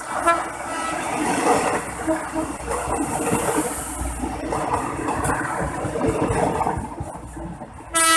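A train horn sounds loudly.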